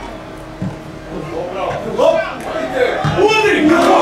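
Spectators cheer and shout as play nears the goal.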